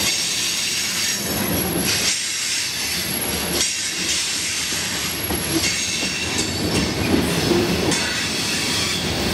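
A freight train rumbles past close by, wheels clattering and squealing on the rails.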